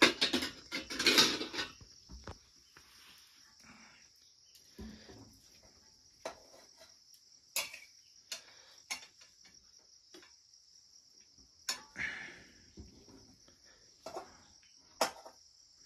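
Metal utensils clink and scrape against pots and pans.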